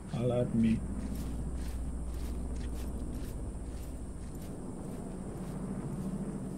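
Footsteps crunch on dirt ground.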